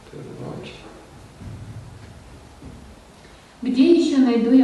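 An elderly man speaks quietly into a microphone.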